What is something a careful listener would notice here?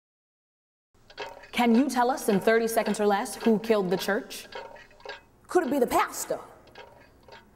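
A woman speaks with expression, close by.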